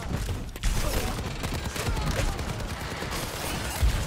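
A gun fires rapid shots.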